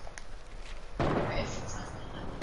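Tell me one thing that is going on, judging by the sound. A wooden wall snaps into place with a hollow knock.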